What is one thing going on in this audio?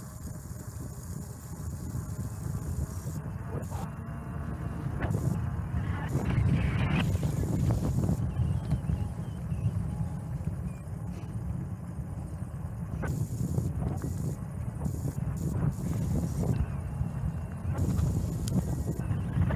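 Small hard wheels roll and rumble steadily over rough asphalt.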